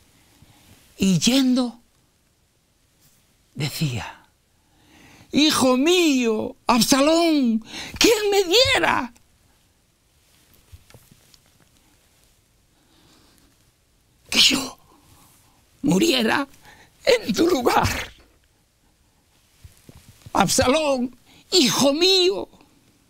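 An elderly man speaks with animation into a close microphone, in short bursts with pauses.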